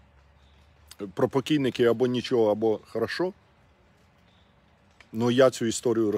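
A middle-aged man speaks calmly and close to the microphone.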